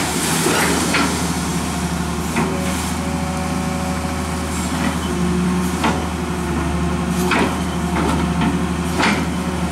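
Water churns and splashes around an excavator bucket.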